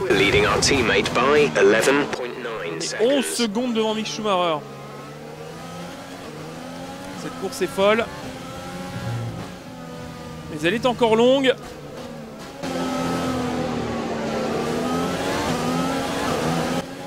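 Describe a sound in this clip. A racing car engine screams at high revs, rising and dropping in pitch as it shifts gears.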